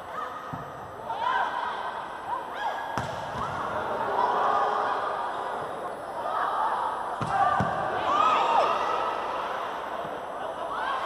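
A volleyball is struck with sharp thuds.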